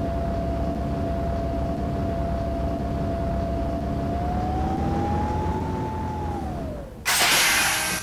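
A bus engine hums steadily and rises in pitch as the bus drives along.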